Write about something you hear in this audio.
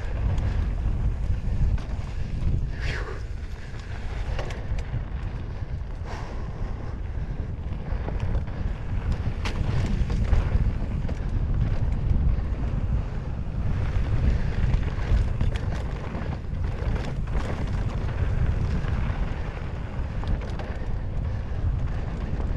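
Wind rumbles loudly against a microphone.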